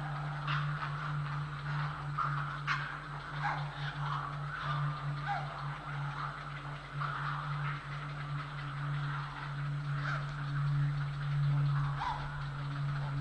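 Heron chicks chatter and squawk in short, repeated calls.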